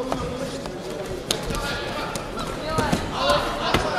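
A body thuds heavily onto a mat.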